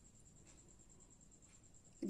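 A wooden stick taps softly against a small metal cup.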